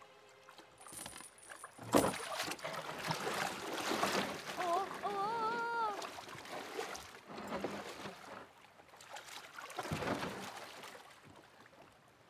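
Water splashes and sloshes around a wooden boat.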